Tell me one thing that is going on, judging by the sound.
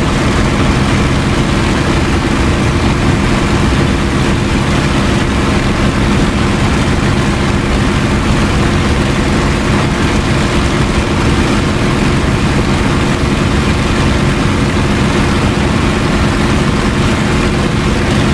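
A propeller aircraft engine drones steadily and loudly.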